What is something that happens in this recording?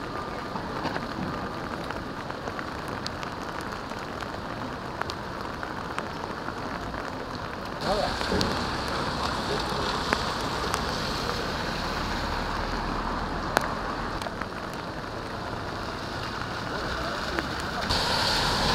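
Rain falls steadily on a wet street outdoors.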